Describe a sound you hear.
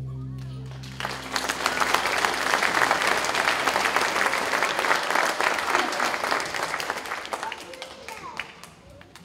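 An audience applauds loudly in a large hall, then the clapping fades.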